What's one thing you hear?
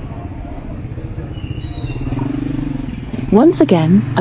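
A motorbike engine hums as it passes close by.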